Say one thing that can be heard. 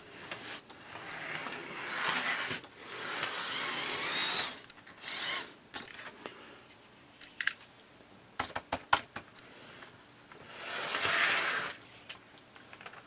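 A small electric motor whirs and rattles along the track.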